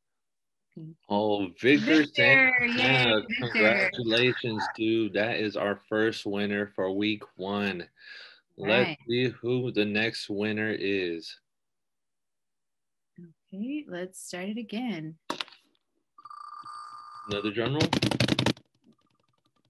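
A young man talks over an online call.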